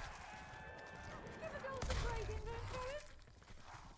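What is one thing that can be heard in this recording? A magical blast bursts with a deep whoosh.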